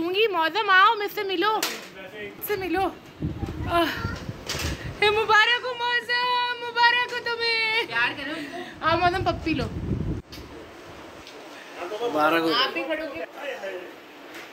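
A woman talks and laughs with animation close by.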